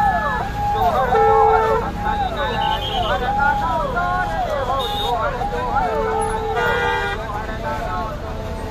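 Music plays loudly through loudspeakers.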